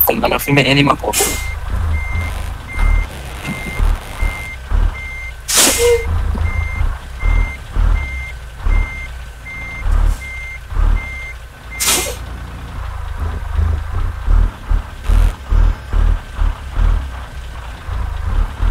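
A truck engine rumbles low and throbs unevenly.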